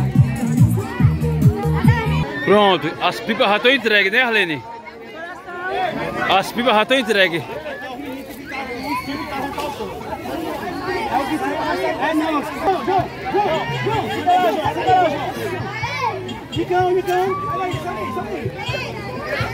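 A crowd of children and adults chatter close by, outdoors.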